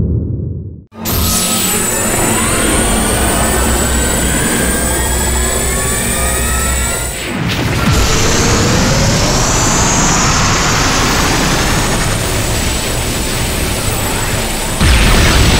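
A huge energy blast roars and whooshes.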